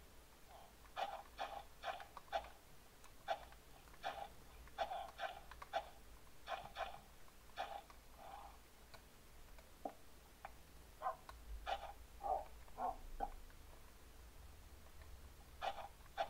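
Short, soft digging thuds from a video game repeat again and again.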